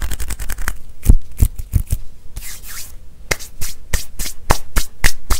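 Hands snap and clap sharply close to a microphone, at uneven intervals.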